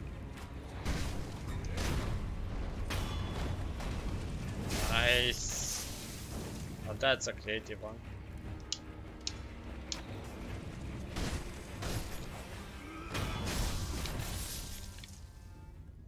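Swords clash and strike with sharp metallic rings.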